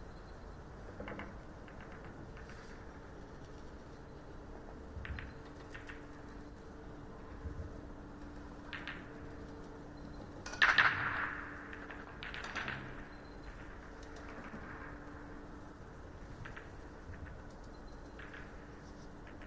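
Billiard balls click and clack together as they are gathered and racked.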